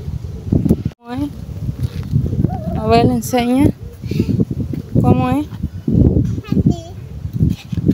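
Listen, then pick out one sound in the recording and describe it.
A young girl squeals and chatters playfully close by.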